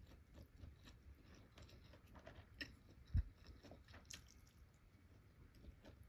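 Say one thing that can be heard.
Chopsticks click softly as food is lifted from a dish.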